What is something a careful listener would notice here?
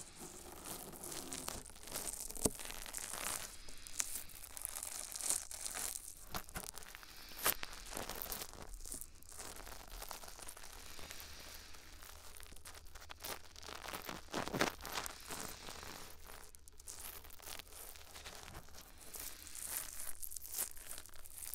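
Fingers rub and tap very close to a microphone.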